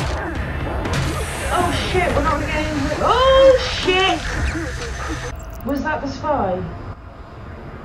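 A young man exclaims and talks excitedly, close by.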